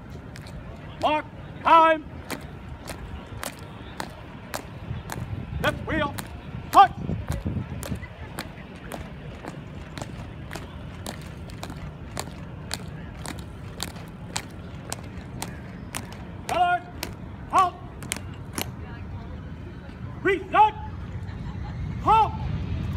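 A man shouts marching commands loudly outdoors.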